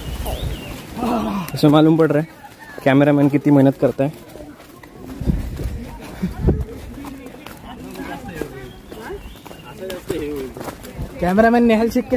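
A young man talks loudly and animatedly close by.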